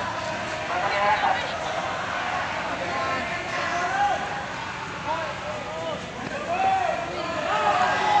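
Many footsteps shuffle on the road.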